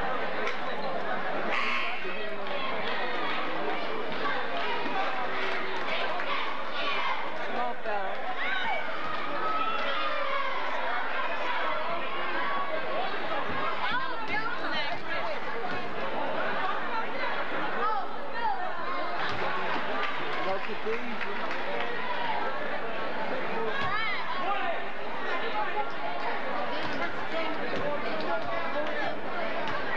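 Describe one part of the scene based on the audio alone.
A large crowd chatters and calls out throughout, echoing in a big hall.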